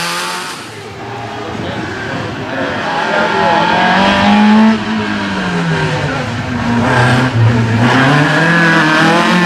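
A second rally car engine roars loudly as the car climbs toward and passes close by.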